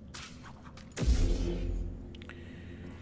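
A lightsaber ignites with a loud humming buzz.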